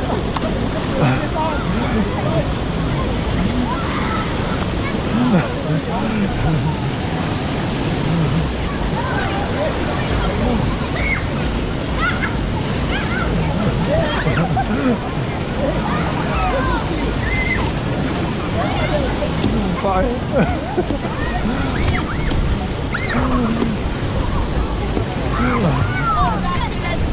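Children shout and chatter nearby, outdoors.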